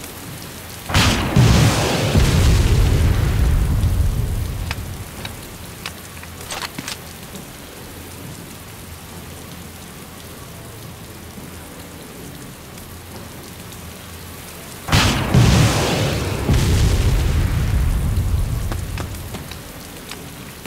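A distant explosion booms and then rumbles away.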